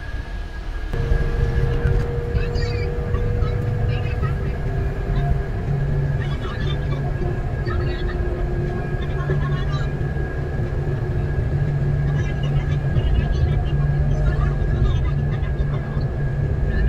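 A vehicle's engine rumbles steadily from inside.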